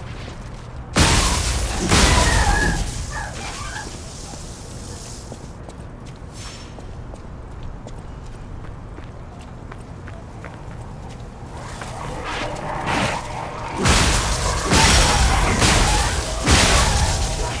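Heavy blows and clashes of a weapon striking ring out.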